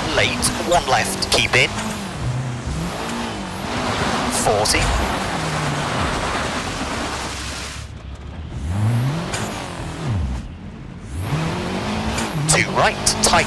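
Tyres crunch and skid over a loose, snowy road.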